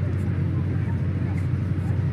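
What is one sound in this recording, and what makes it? A diesel train rumbles as it approaches.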